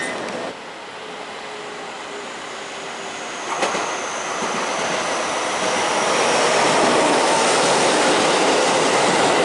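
A train approaches and rolls past with a growing rumble and rattle.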